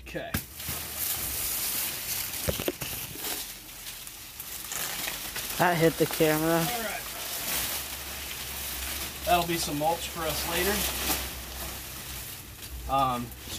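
Large leaves rustle and swish as a stalk is pulled.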